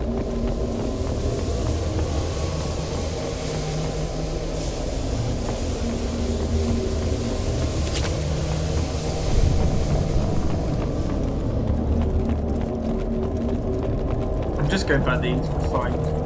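Heavy boots crunch steadily on rough ground.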